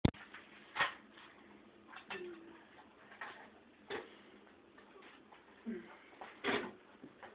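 Dishes and utensils clatter on a counter.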